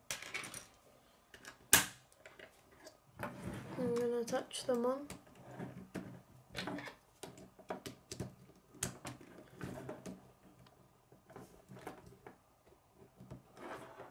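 Plastic toy pieces click and clack as they are snapped together.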